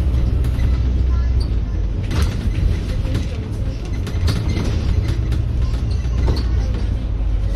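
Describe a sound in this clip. A vehicle engine rumbles steadily while driving along a road.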